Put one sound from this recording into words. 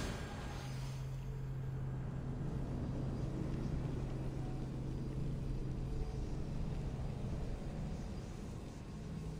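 A low, steady magical hum drones.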